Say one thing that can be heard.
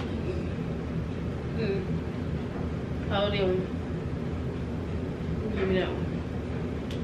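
A young woman speaks softly in short phrases nearby.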